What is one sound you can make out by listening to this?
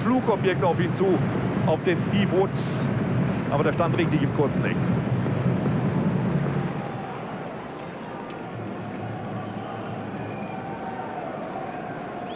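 A large stadium crowd murmurs and roars steadily outdoors.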